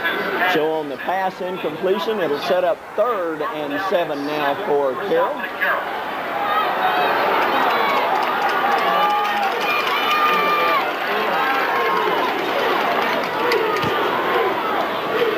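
A large crowd cheers and murmurs outdoors.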